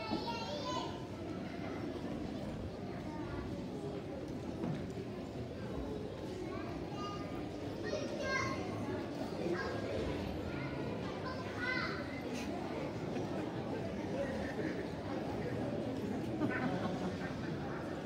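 An audience murmurs and chatters in a large hall.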